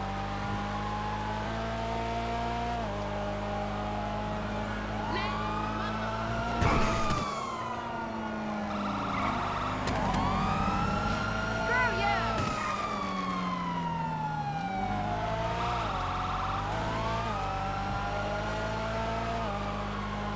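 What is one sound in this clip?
A car engine roars steadily and rises and falls in pitch as the car speeds along.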